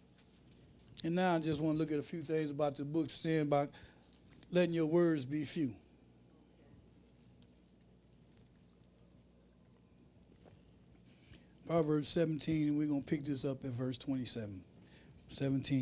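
A man speaks into a microphone, reading out in a calm, deliberate voice.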